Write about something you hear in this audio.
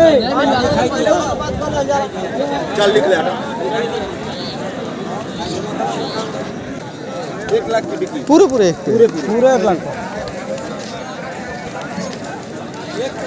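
A man speaks with animation close by, amid other voices outdoors.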